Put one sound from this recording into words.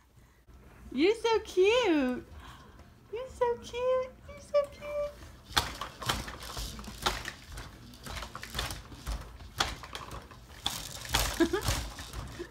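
A baby squeals and babbles close by.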